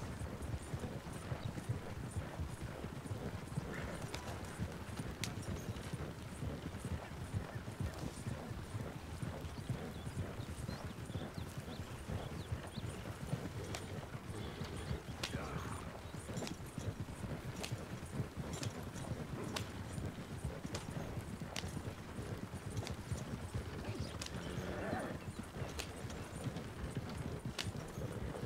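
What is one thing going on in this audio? Wooden wagon wheels rumble and creak over a dirt track.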